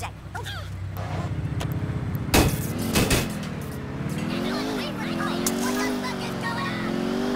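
A car engine starts and revs as the car pulls away.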